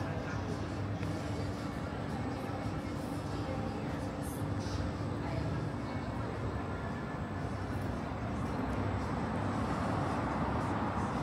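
Outdoors, a steady murmur of city noise fills the air.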